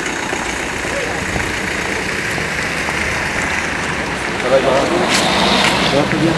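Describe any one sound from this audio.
A car drives past on a wet road.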